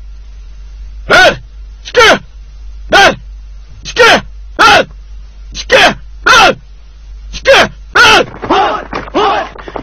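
A group of men shouts in unison as they march.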